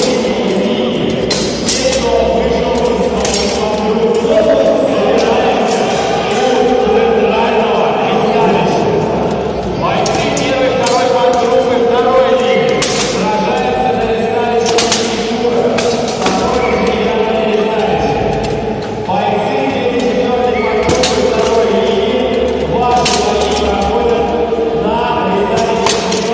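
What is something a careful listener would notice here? Steel swords clang against armour and shields.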